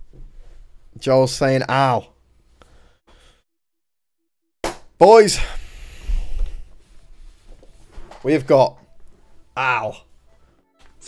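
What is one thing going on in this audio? A young man speaks loudly and with animation into a close microphone, in short bursts.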